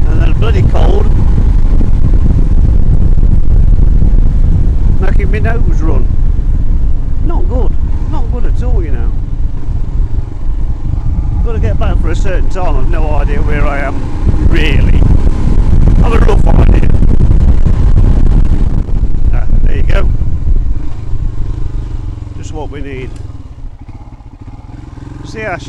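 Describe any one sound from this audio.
A motorcycle engine hums steadily, then eases off as the bike slows.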